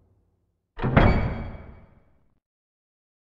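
Heavy metal doors slide open with a loud booming clang that rings out.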